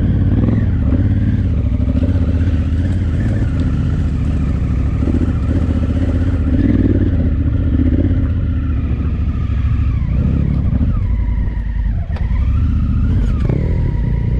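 Tyres crunch over loose gravel and rock.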